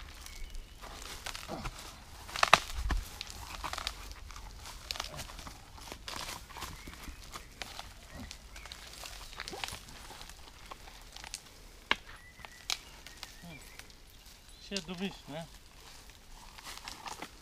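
Leaves and twigs rustle underfoot.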